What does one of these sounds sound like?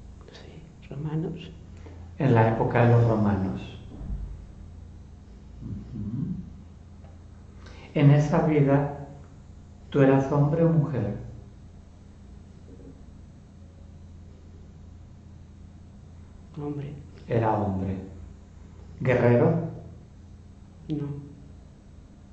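An elderly man speaks calmly and gently, close by, in short phrases with pauses.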